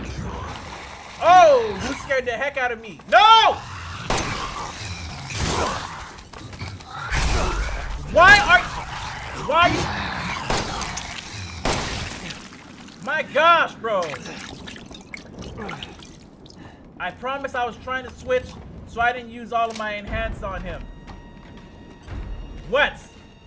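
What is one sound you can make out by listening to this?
A young man talks and exclaims with animation into a close microphone.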